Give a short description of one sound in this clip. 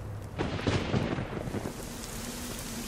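Flames roar and crackle, then die out with a hiss.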